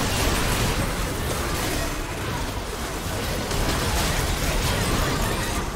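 Game spells crackle and explode in a busy battle.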